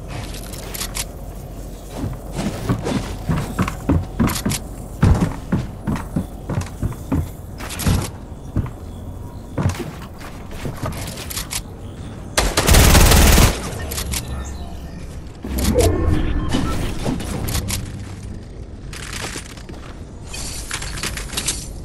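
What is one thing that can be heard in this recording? Wooden walls snap into place with quick clattering knocks.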